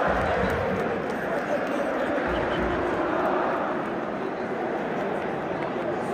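A huge crowd of fans chants loudly together in a large echoing stadium.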